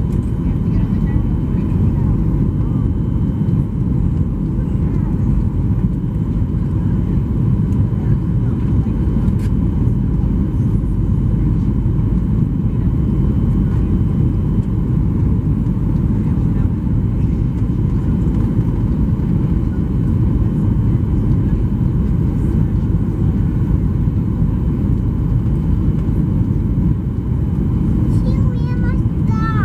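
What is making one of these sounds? Jet engines roar steadily from inside the cabin of a plane in flight.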